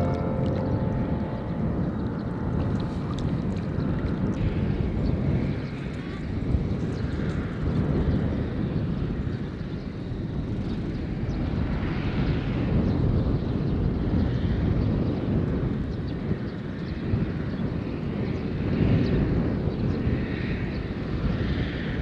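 Wind blows steadily and roughly across open ground.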